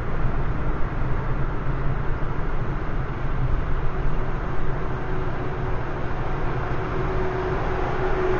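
A truck engine rumbles close by.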